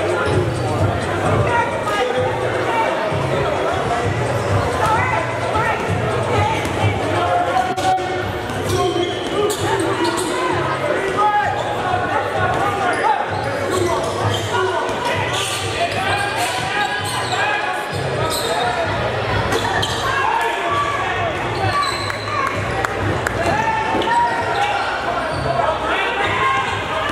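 Music with a steady thumping beat and singing plays loudly over loudspeakers in a large echoing hall.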